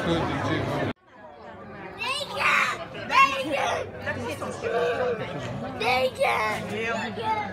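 Nearby adults talk casually in a quieter crowd.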